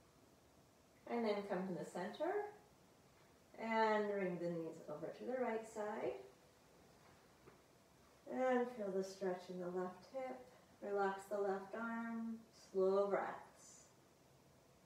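A woman speaks calmly and slowly, close to the microphone, giving instructions.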